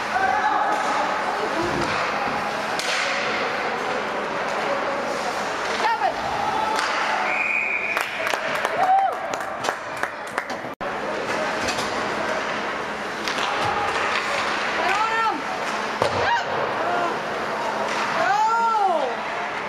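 A crowd of spectators chatters in a large echoing rink.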